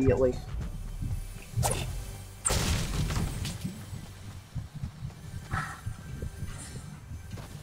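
Footsteps thud quickly.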